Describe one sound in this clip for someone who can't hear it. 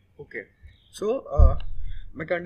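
A young man speaks briefly and quietly, close by.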